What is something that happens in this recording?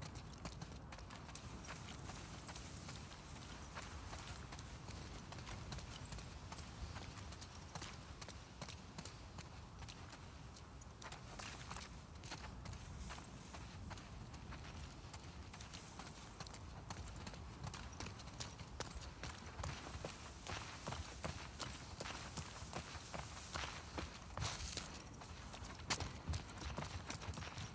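Footsteps crunch and swish through tall grass and over pavement.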